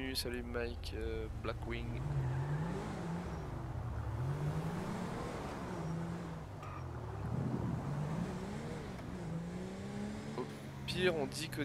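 A car engine revs and hums as the car drives off and speeds up.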